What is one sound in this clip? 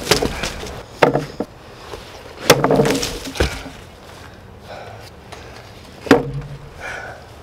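A heavy blade chops into watermelon with loud, wet smacking thuds.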